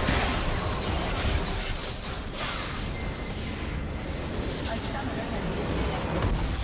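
Game spell effects and explosions crash and burst in a chaotic fight.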